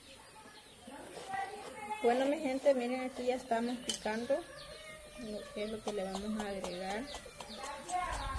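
A knife cuts through vegetables with light taps.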